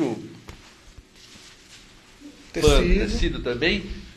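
Papers rustle as they are handled.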